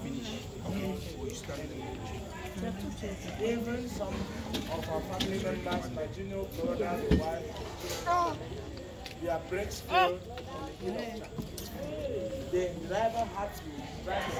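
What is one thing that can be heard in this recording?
A man speaks with animation to a group outdoors.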